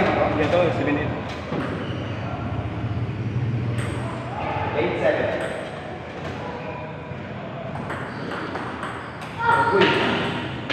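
A table tennis ball clicks against paddles and the table.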